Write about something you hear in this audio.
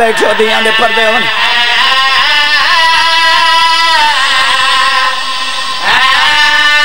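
A man chants loudly and with feeling into a microphone, heard through loudspeakers.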